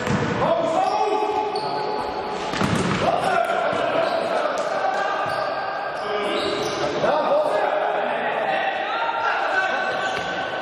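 Sneakers squeak sharply on a gym floor in an echoing hall.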